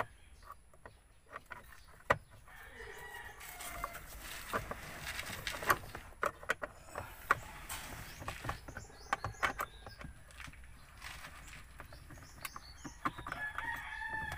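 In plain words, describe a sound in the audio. A screwdriver clicks and scrapes against plastic.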